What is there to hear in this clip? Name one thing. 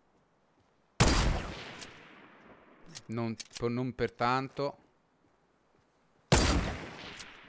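A sniper rifle fires with a loud crack that echoes away.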